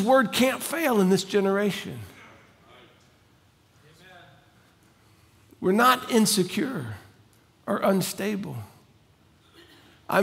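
A middle-aged man speaks clearly into a microphone, with pauses, in a quiet room.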